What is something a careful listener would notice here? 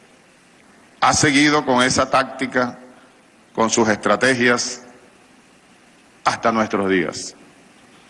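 A middle-aged man speaks deliberately into a microphone, in bursts with pauses.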